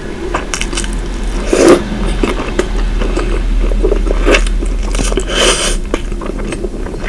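A woman chews wetly and close up.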